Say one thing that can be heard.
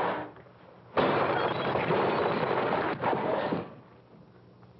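A potted plant crashes and shatters on the floor.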